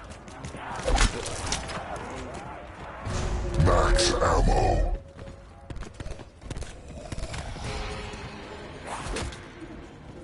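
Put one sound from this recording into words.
A gun fires a few sharp shots.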